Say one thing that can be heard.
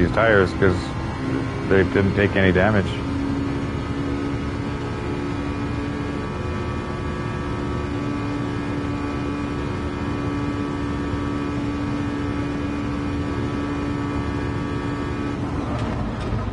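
A racing car engine roars at high revs, steady at speed.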